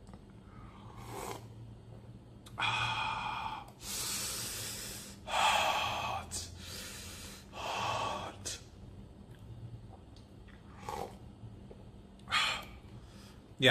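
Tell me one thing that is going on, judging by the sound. A man slurps from a bowl.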